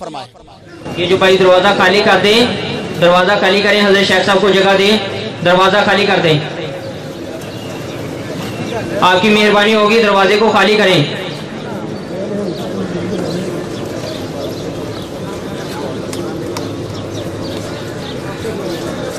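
A large crowd of men murmurs outdoors.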